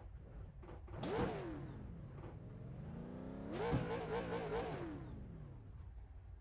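A race car engine revs up and down twice.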